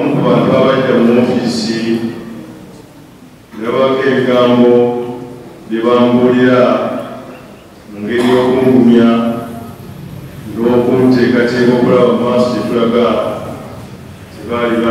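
A man speaks into a microphone in a loud, preaching voice, echoing in a large hall, in phrases with pauses.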